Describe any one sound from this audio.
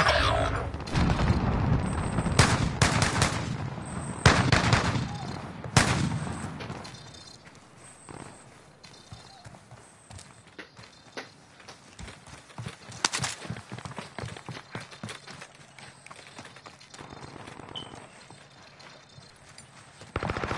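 Footsteps thud quickly on dirt and gravel.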